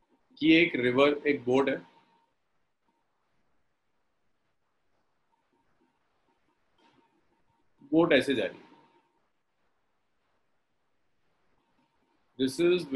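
A young man speaks calmly in short phrases through a microphone, as on an online call.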